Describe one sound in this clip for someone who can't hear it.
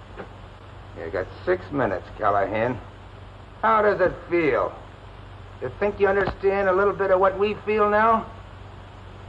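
A man speaks in a low, tense voice.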